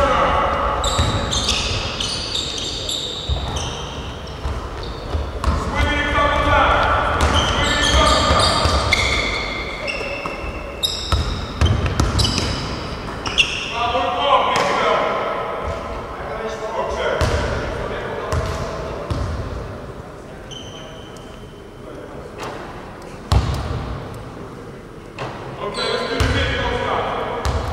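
Sneakers squeak sharply on the gym floor.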